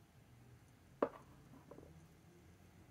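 Small plastic paint tubes click and tap together as they are handled.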